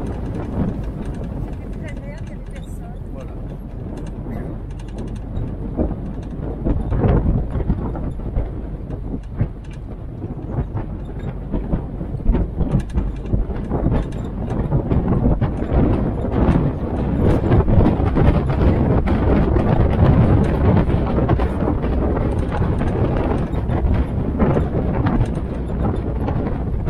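Wind buffets an open vehicle.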